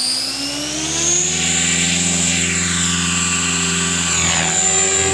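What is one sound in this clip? Rotor blades whir and thump as a model helicopter lifts off.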